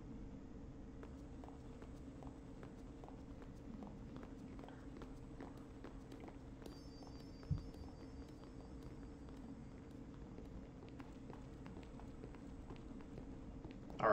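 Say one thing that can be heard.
Footsteps tap softly and steadily on the ground.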